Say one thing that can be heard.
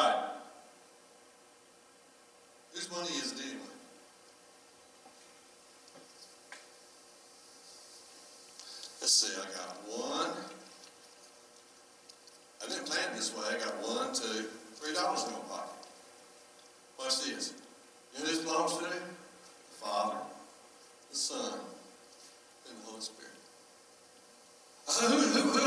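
A man speaks with animation into a microphone, in a large echoing hall, with long pauses.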